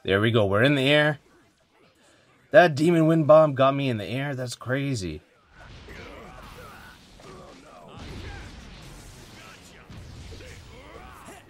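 Blows and hits land in a fast fight.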